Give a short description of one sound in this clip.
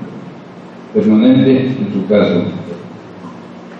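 A man speaks briefly through a microphone in a room with some echo.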